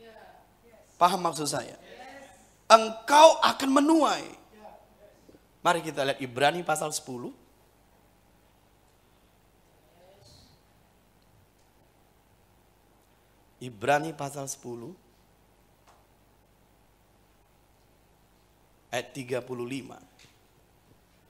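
A middle-aged man speaks slowly and earnestly into a microphone, with pauses between phrases.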